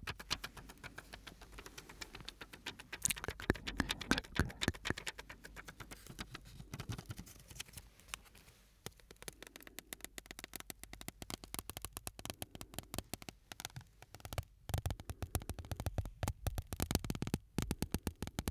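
Crinkly plastic crackles and rustles close up as fingers handle it.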